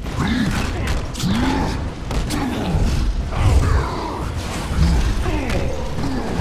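Heavy blows and crashes thump loudly.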